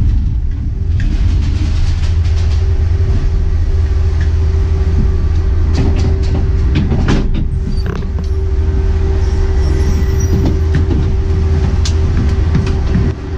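Metal machinery clanks and rattles loudly as the gondola rolls through the station.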